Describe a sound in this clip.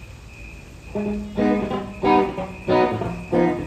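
An electric guitar strikes loud, ringing chords.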